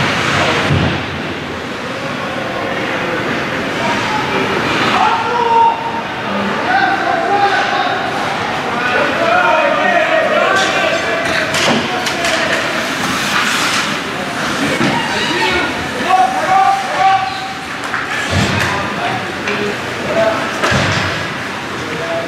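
Spectators cheer and shout in a large echoing rink.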